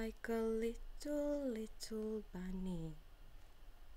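A young woman sings a few soft, drawn-out notes close by.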